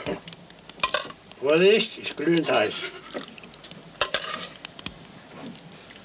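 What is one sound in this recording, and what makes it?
A ladle clinks against a bowl.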